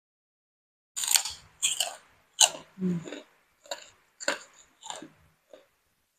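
Crunchy crackers crunch loudly as a woman bites and chews them.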